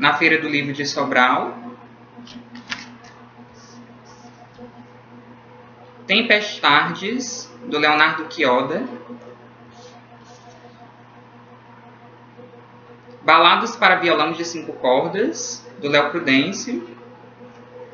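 A young man talks calmly, close to the microphone, in short bursts.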